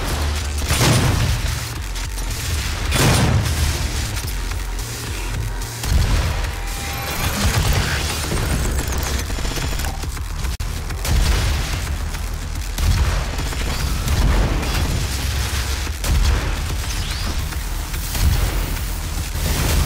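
A monster roars and snarls.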